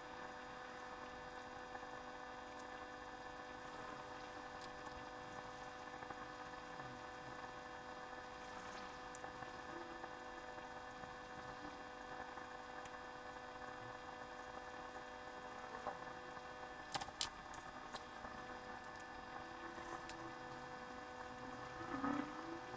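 Metal tweezers click lightly against a circuit board.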